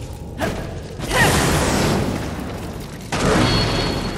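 Flames roar in a loud burst.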